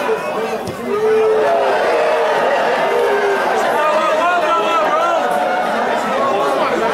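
A crowd roars louder.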